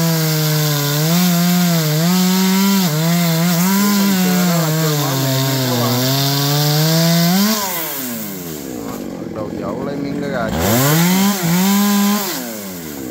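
A chainsaw engine roars loudly, revving up and down.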